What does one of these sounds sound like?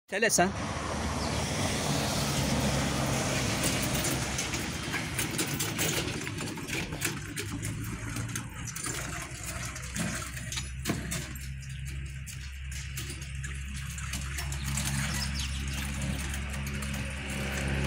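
Wooden boards on a cart rattle and knock.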